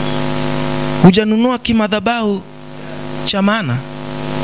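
A man speaks with animation into a microphone through loudspeakers.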